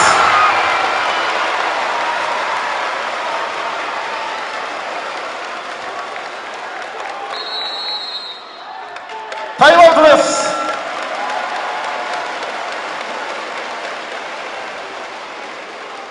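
A large crowd cheers loudly in an echoing hall, slowly dying down.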